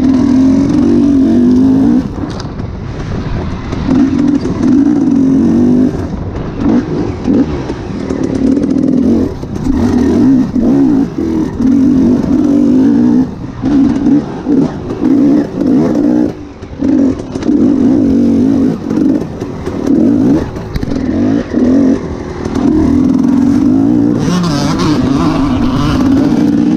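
A dirt bike engine revs hard and drops off over and over.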